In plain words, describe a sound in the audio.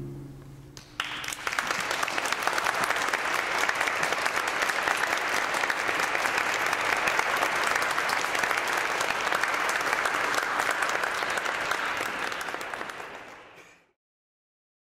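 An audience applauds loudly in an echoing hall, then stops abruptly.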